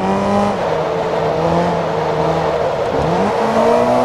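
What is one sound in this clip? Tyres squeal through the corners.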